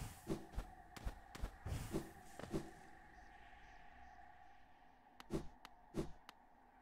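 Sharp thumps and clicks of game sound effects ring out in quick bursts.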